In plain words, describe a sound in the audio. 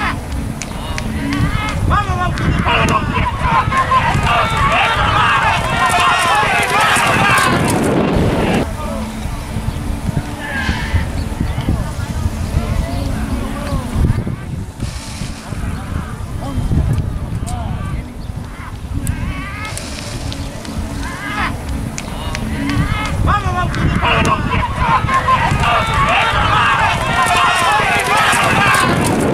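Horses' hooves pound on a dirt track.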